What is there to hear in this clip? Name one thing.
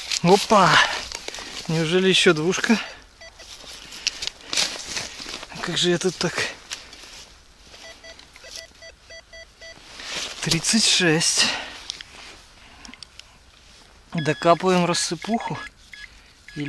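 A metal detector gives warbling, rising and falling tones.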